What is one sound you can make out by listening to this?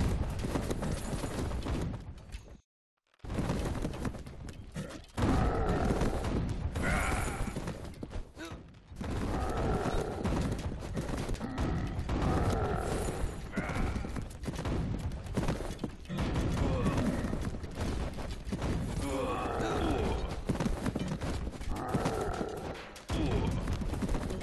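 Explosions boom again and again in a loud battle.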